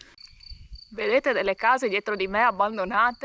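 A young woman talks close by, with animation.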